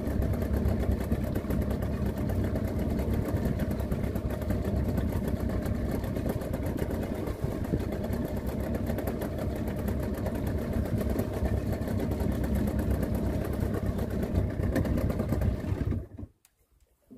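An outboard motor drones steadily close by, then cuts out.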